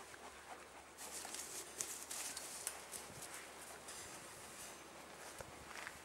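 A dog rolls about on grass, rustling it.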